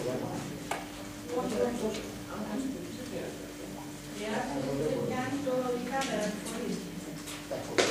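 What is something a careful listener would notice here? An elderly man speaks up nearby.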